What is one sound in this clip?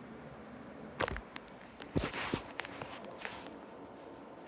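Hands knock and rustle against a hard object close by.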